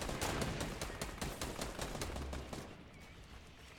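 Rapid clattering knocks of structures being built sound in quick succession.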